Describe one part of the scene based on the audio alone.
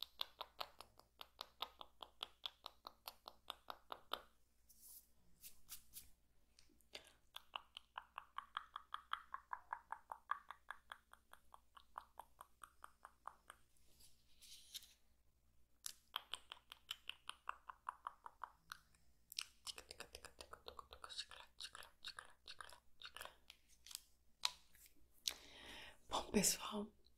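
A young woman whispers softly very close to a microphone.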